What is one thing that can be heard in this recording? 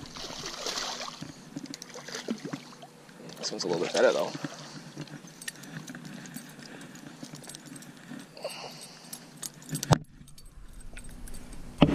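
A fish splashes and thrashes at the surface of the water.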